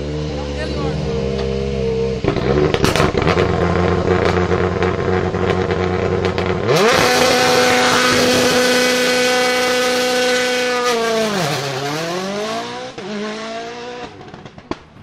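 A rally car engine idles loudly up close, then revs hard.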